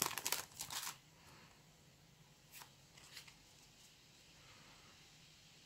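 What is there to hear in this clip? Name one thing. Playing cards shuffle and slide against each other.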